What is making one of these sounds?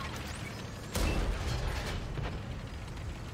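A cannon shot booms with an explosion.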